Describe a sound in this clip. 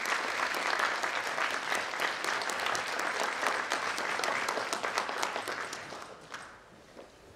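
An audience applauds in a large hall, and the clapping fades away.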